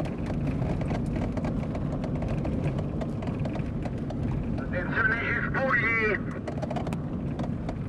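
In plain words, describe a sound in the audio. Tyres crunch and hiss over loose sand.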